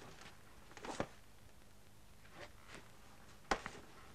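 A cardboard box and paper rustle as they are handled.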